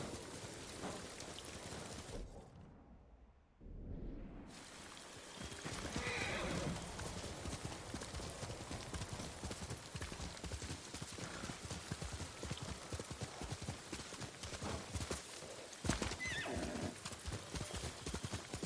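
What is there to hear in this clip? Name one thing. A horse gallops with rapid hoofbeats on soft ground.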